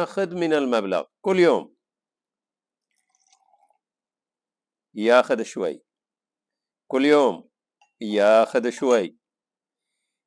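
A middle-aged man speaks calmly close to a microphone.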